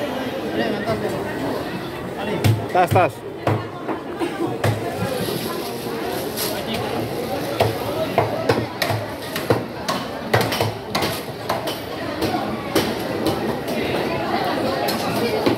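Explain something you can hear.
Voices of a crowd murmur in the background.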